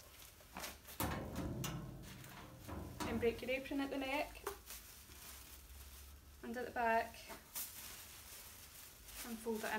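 A plastic apron rustles and crinkles.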